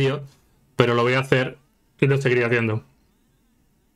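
A man speaks briefly and with animation, close to a microphone.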